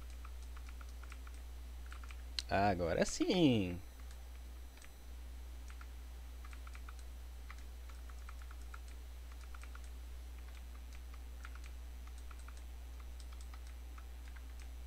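Soft clicking hit sounds from a video game battle tick repeatedly.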